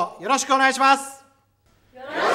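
A young man calls out loudly and sharply.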